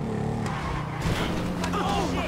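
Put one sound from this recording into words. A motorcycle crashes onto the road with a sudden thud.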